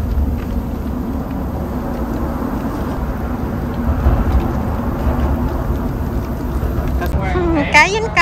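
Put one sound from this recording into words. Hot oil bubbles and sizzles steadily.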